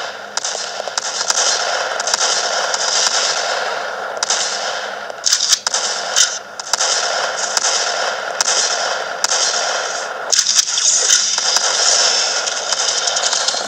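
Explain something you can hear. Video game gunfire cracks in quick bursts.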